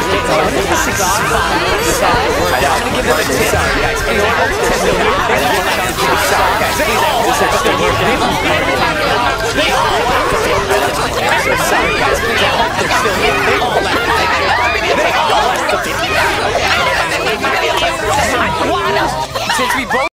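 A girl talks and laughs into a microphone.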